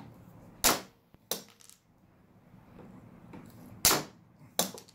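Metal pliers click and snap.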